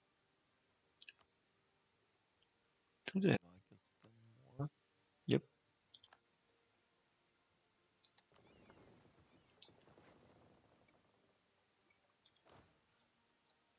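Short interface clicks and chimes sound now and then.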